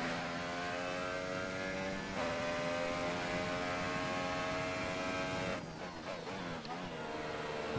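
A racing car engine screams at high revs, shifting up through the gears and then dropping down.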